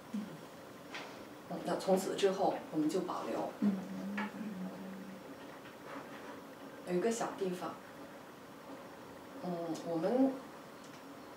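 A young woman speaks calmly nearby, in short phrases with pauses.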